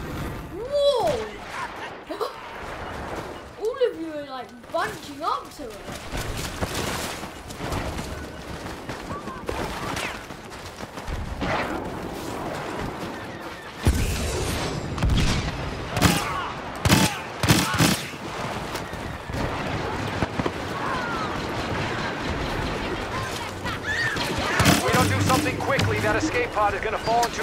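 Blaster rifles fire in sharp bursts.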